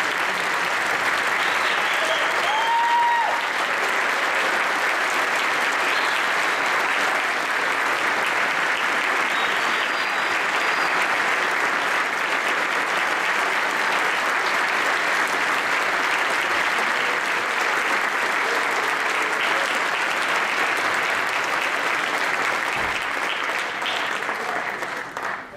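A large audience applauds loudly in an echoing hall.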